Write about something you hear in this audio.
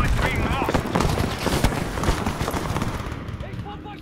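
An explosion booms heavily.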